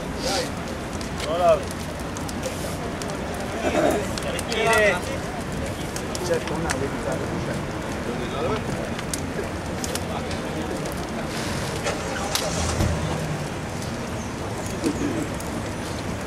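A crowd of adults murmurs and talks in the distance.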